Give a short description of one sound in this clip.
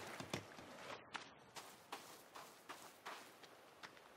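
Footsteps crunch steadily over dry ground and grass.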